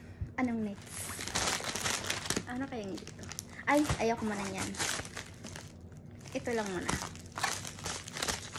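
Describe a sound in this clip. Crinkly plastic packaging rustles in someone's hands.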